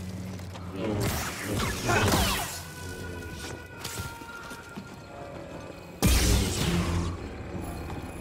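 Heavy whooshing blows crash in a short fight.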